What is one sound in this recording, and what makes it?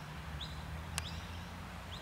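A cricket bat hits a ball with a sharp crack.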